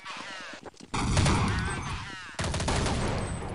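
Gunshots ring out in loud rapid bursts.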